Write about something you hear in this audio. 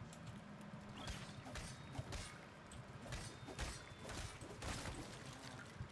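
Sharp, repeated hits ring out as a pickaxe strikes rock.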